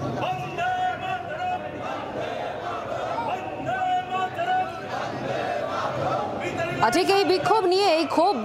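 A crowd of men and women chatter loudly indoors.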